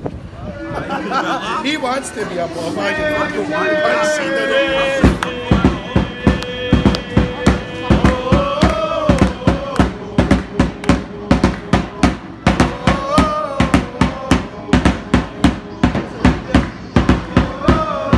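A football crowd of young men chants in unison.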